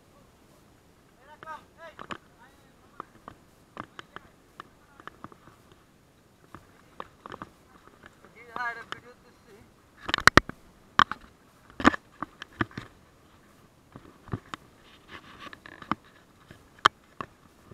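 Wooden walking sticks tap against rock.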